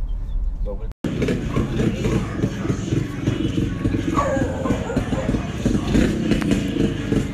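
A motor tricycle engine rattles and putters nearby.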